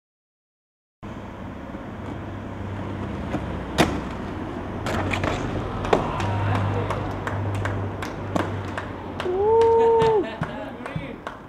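Skateboard wheels roll and rumble over pavement.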